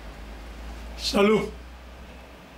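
An elderly man laughs close by.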